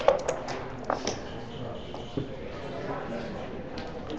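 Dice tumble onto a board.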